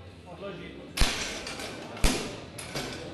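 A barbell clanks down into a metal rack.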